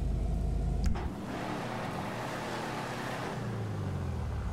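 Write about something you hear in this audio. A metal roller door rattles open.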